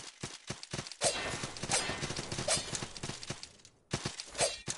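A blade slashes swiftly.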